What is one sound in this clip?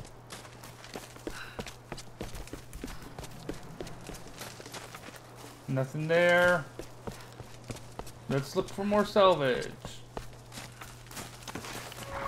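Footsteps crunch on leaves and dirt.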